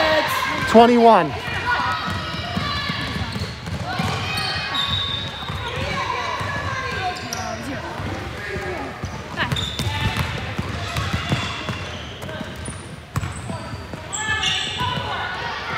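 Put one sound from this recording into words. Young girls shout and call out to each other in a large echoing gym.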